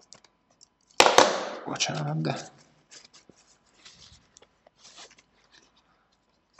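Tissue paper rustles as it rubs against metal.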